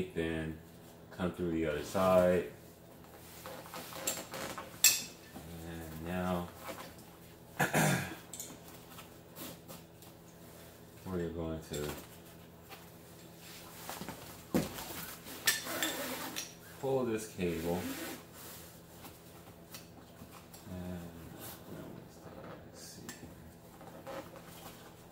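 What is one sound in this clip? A fabric cover rustles.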